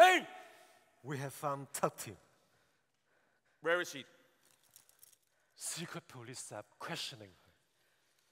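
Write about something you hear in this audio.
A man speaks in short, dramatic phrases on a stage.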